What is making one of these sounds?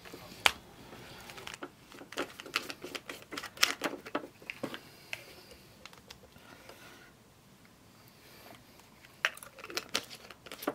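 Pills rattle inside a plastic jar.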